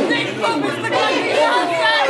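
A woman shouts excitedly nearby.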